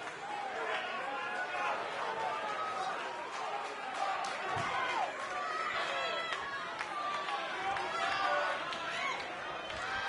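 A large crowd cheers and chatters in an echoing arena.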